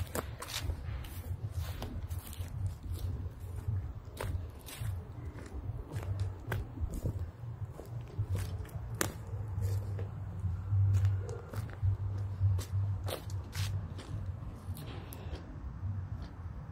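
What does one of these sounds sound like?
Footsteps crunch on dry leaves outdoors.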